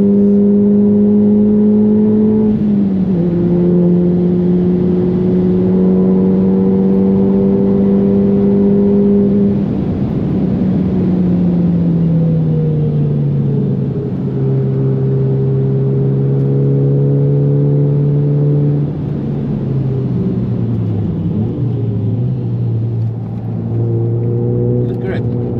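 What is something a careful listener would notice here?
A car engine drones loudly at high speed, shifting gears and then slowing down.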